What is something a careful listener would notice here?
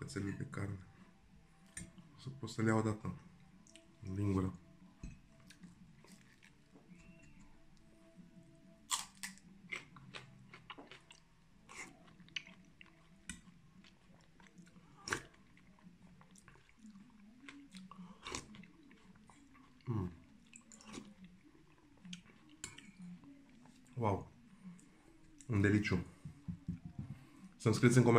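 A man chews and smacks his lips.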